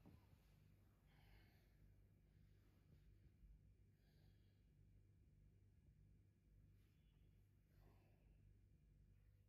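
A man breathes out in heavy sighs close by.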